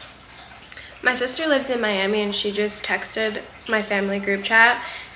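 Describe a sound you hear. A young woman speaks calmly and softly close to a microphone.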